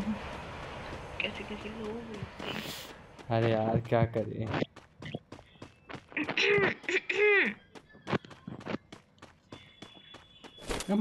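Quick footsteps patter on grass and wooden steps.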